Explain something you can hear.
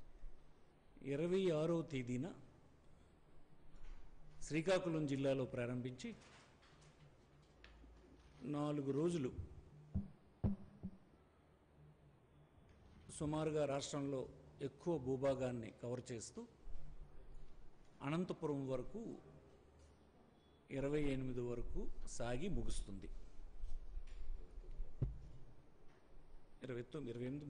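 A man speaks into a microphone in short, emphatic bursts with pauses between.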